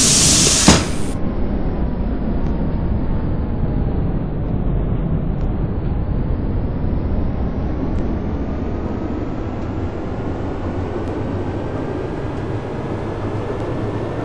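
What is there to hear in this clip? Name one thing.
An electric motor whines, rising and falling in pitch.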